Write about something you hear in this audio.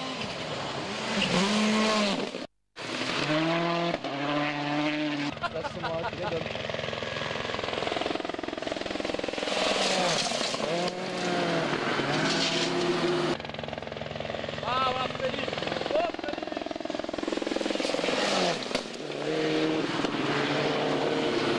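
Gravel sprays and crunches under the tyres of passing rally cars.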